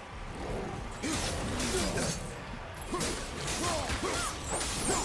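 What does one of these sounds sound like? Flaming blades whoosh through the air with a fiery roar.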